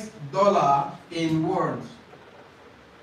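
A man speaks clearly into a microphone.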